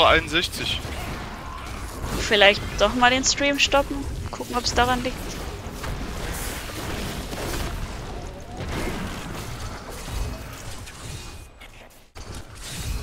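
Magic spells crackle and blast during a rapid fight.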